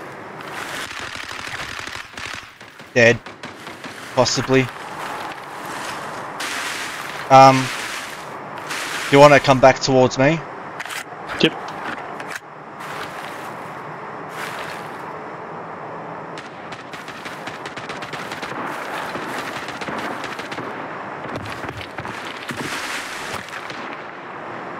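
Branches and pine needles rustle as someone pushes through dense brush.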